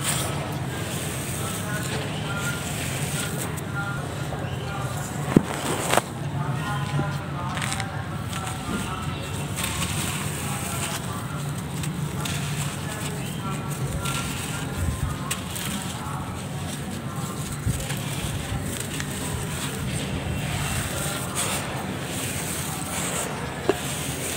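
Dry dirt crumbles and trickles through hands, close up.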